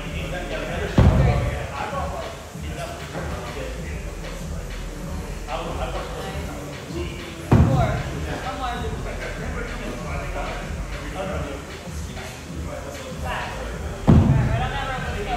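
Dumbbells thud heavily onto a hard floor.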